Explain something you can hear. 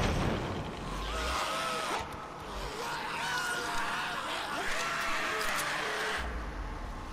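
A horde of creatures shrieks and howls.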